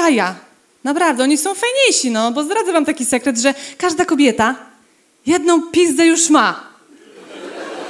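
A young woman speaks with animation into a microphone in a large hall.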